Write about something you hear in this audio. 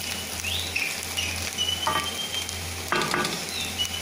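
A metal spatula scrapes and stirs rice in a pan.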